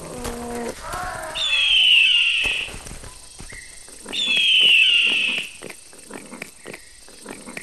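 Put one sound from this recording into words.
A crocodile crunches and tears at a carcass.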